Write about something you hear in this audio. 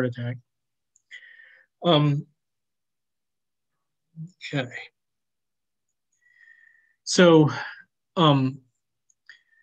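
A woman speaks calmly over an online call, with pauses between phrases.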